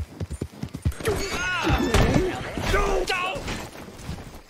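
A horse whinnies loudly in distress.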